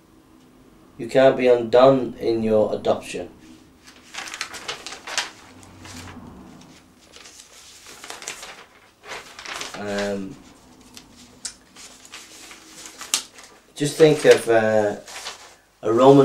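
A middle-aged man reads aloud nearby, pausing now and then.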